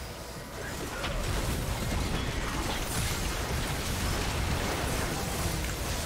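Fiery spells burst and crackle in a busy video game fight.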